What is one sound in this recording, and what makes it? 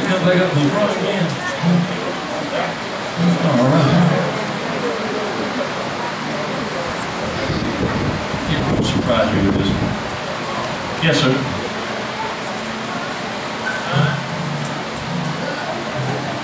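A band plays live music through loudspeakers.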